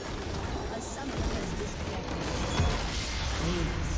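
A large crystal structure shatters in a booming explosion.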